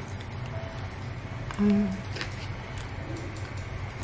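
A young woman chews and smacks her lips.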